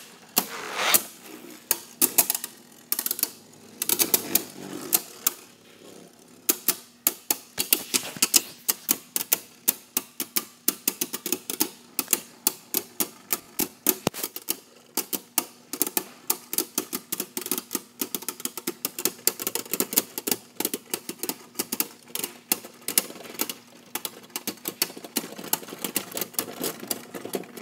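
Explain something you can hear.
Spinning tops clatter and clack against each other in a plastic bowl.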